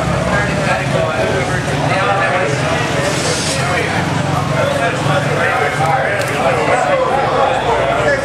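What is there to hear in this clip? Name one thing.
A crowd of adult men and women chatters loudly all around.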